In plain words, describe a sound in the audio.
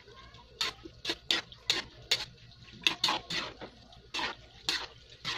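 A metal spoon scrapes and clatters against a metal pan while stirring food.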